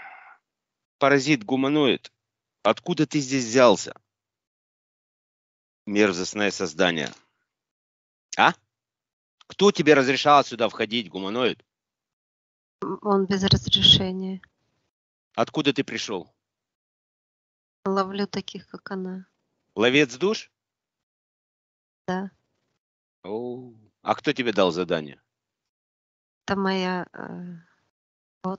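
A woman speaks calmly in short phrases into a close microphone, with pauses between them.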